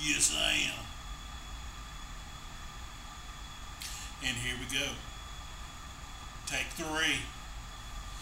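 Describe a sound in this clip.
A man speaks close to a microphone in short, halting bursts with long pauses.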